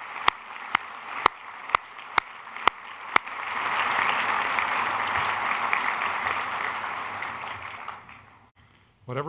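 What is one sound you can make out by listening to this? A large crowd applauds in a big hall.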